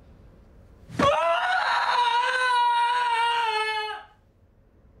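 A woman lets out a long, loud anguished wail close by.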